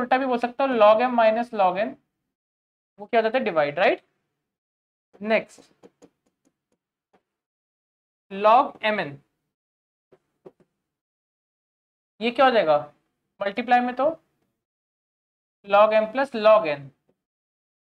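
A young man explains calmly through a close microphone, in short phrases with pauses.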